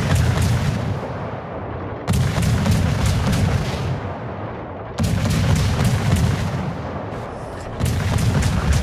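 Anti-aircraft guns fire in rapid bursts of cracks.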